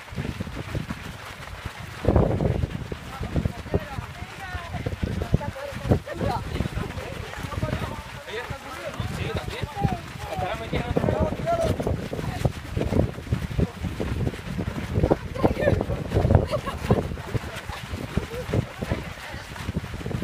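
Many running feet thud and crunch on a gravel path.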